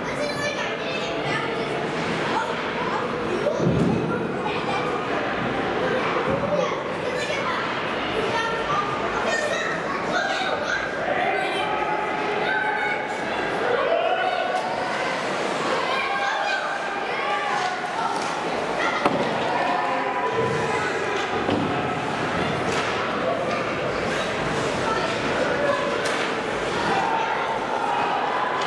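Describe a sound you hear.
Young players shout to each other across the rink.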